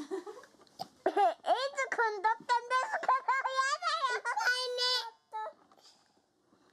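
A small boy chatters and sings close to the microphone.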